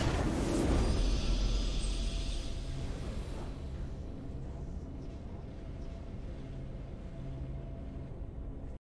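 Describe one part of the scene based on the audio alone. A triumphant music cue plays as the battle ends.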